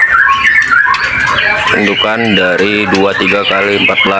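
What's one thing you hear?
Birds flutter their wings against a wire cage.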